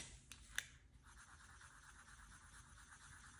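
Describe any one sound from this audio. A felt-tip pen scratches softly on paper.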